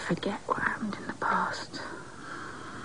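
A woman speaks in a low, earnest voice close by.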